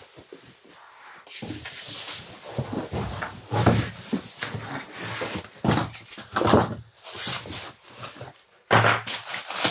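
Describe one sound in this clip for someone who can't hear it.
Bubble wrap crinkles and rustles as it is folded over a box.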